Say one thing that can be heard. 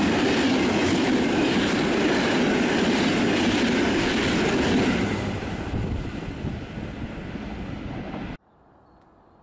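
A train rushes past close by with a loud roar, then fades away.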